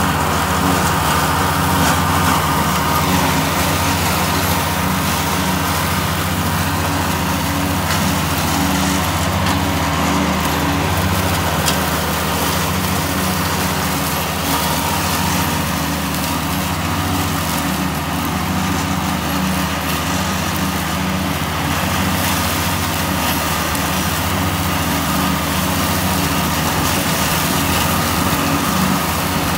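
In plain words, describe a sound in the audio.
A small tractor engine runs steadily close by.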